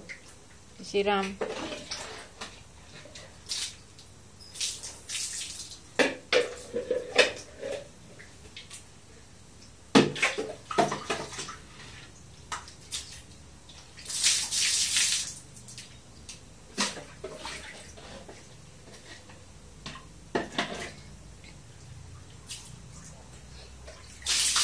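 A plastic scoop knocks against a tiled basin.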